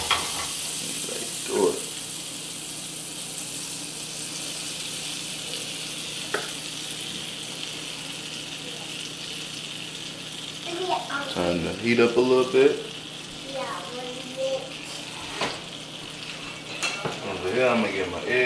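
Batter sizzles steadily in a hot frying pan.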